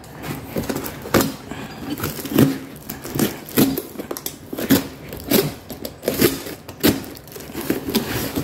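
A plastic wrapper crinkles and tears as hands pull it open.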